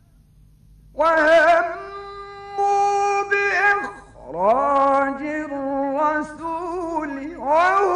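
An elderly man chants in a long, wavering melodic voice, heard through an old recording.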